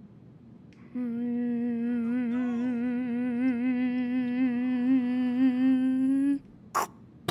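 An old tube television gives off a buzzing tone.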